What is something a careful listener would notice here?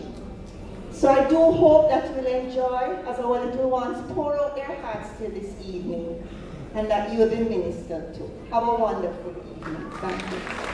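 A woman speaks with animation through a microphone in an echoing hall.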